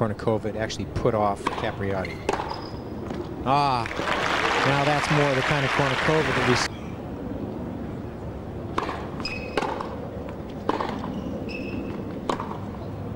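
Tennis rackets strike a ball with sharp pops.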